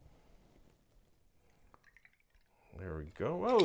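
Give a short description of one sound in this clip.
Liquid pours into a metal cup.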